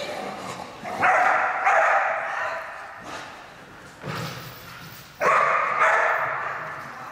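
A dog barks loudly in a large echoing hall.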